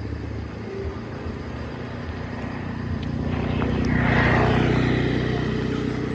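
A monkey scampers quickly through rustling grass.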